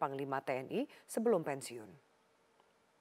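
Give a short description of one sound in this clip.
A young woman reads out the news calmly through a microphone.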